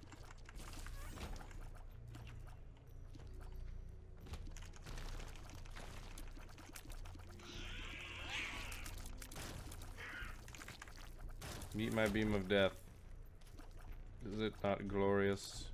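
Game sound effects pop and splat rapidly as shots fire.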